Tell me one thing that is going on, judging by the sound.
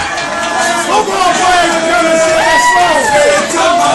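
Young people cheer and shout louder toward the end.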